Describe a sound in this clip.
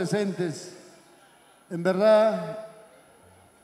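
A man speaks loudly into a microphone over a loudspeaker, in a large echoing hall.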